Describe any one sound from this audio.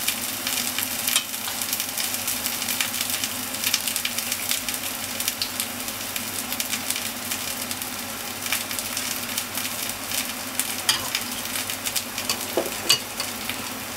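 A metal measuring cup clinks against a glass jug.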